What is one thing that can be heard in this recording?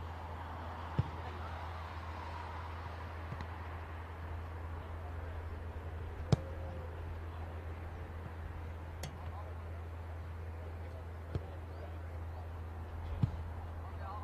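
A football is kicked with dull thuds now and then.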